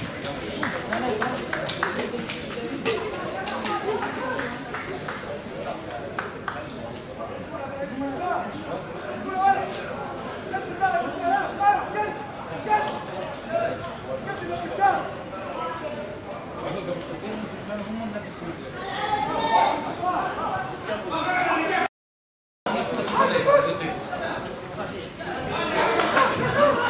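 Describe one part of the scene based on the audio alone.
Young men shout and call to each other across an open pitch.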